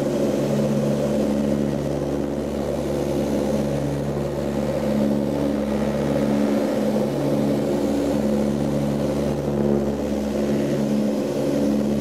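Propeller engines drone loudly and steadily, with a beating, throbbing hum.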